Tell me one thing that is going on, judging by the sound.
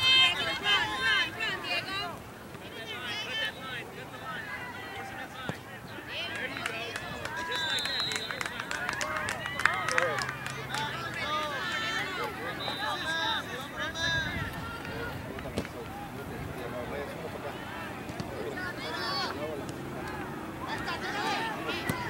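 Children shout and call to each other outdoors across an open field.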